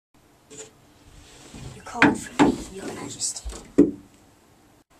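Footsteps thud on hollow wooden boards.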